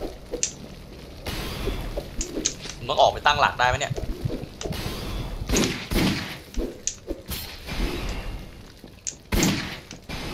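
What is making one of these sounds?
A sword swishes and strikes in a fight.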